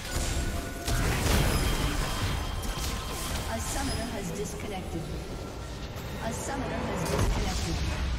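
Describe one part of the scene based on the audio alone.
A structure crumbles and explodes.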